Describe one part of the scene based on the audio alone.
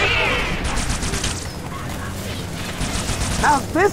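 A gun fires rapid hissing bursts.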